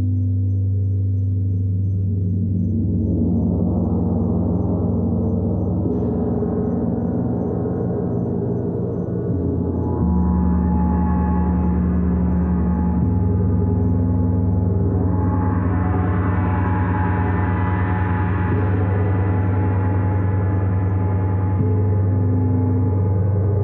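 A large gong booms and hums in long, swelling waves.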